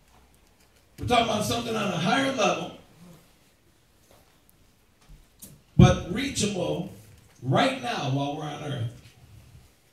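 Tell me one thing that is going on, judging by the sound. A man speaks slowly and earnestly into a microphone, in bursts with pauses.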